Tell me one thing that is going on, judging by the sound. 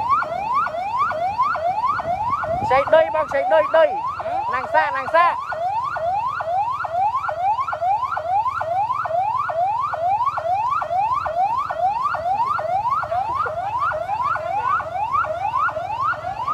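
A police siren wails in a fast, repeating rising yelp.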